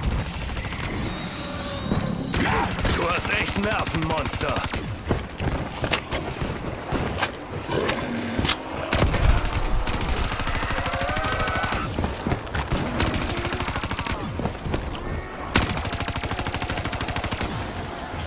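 A heavy gun fires in rapid bursts.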